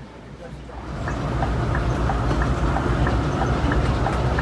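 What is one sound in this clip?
Road noise roars louder as the bus speeds along a highway.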